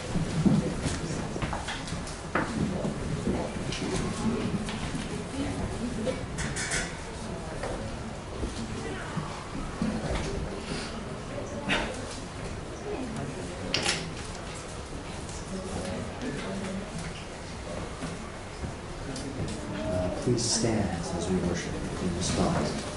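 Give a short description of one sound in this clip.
A man talks quietly into a microphone in a small room.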